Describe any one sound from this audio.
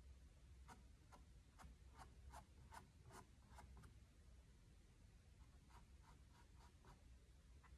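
A paintbrush dabs on canvas.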